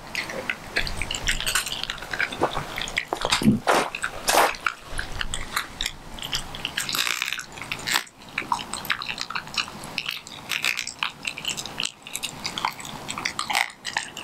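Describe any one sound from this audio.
A dog growls and snarls close by.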